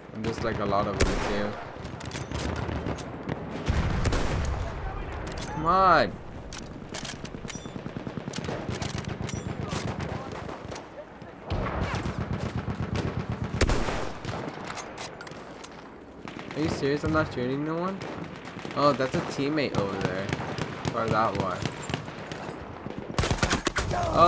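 A rifle fires loud, sharp shots now and then.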